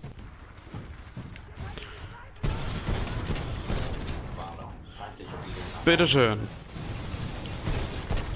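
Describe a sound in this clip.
Explosions thud and crackle.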